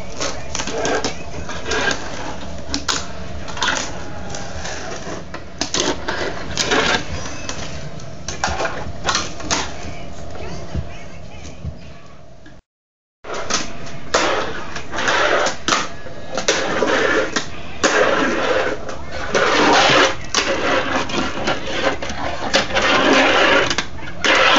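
A fingerboard's wheels clatter and roll on a wooden floor.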